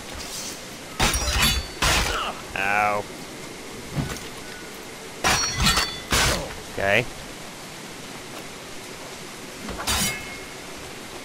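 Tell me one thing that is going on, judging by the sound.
Swords clash and strike with sharp metallic rings.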